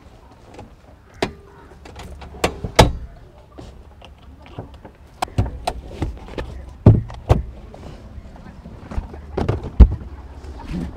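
A folding car seat clunks and knocks into place.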